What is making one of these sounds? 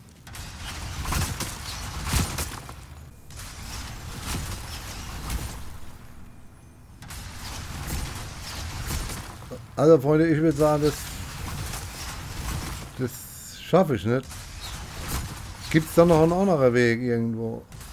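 Armoured footsteps clank on stone.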